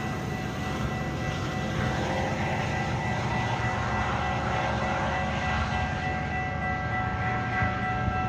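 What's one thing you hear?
Steel wheels roll and clatter on the rails.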